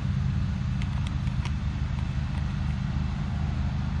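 A hand pumps a plastic garden sprayer.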